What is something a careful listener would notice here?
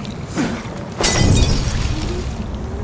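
A fire bursts into flames with a loud whoosh.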